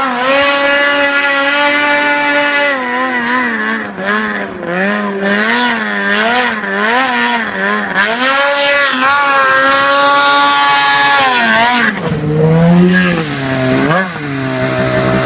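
A snowmobile engine revs and whines loudly, rising and falling in pitch.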